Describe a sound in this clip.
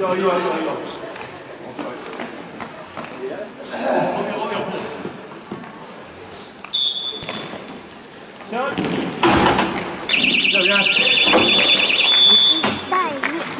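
Players shout to each other across an open rink.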